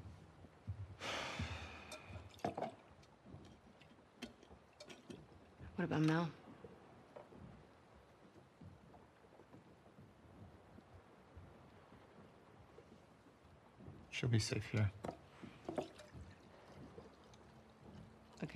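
Dishes clink and knock.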